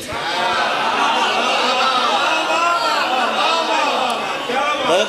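A man recites loudly and passionately through a microphone, in a reverberant space.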